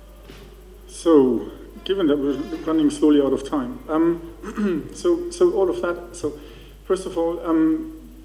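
A man talks with animation into a microphone in a large hall.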